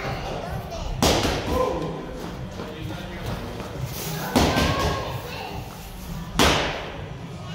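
A girl jumps and lands with a thump.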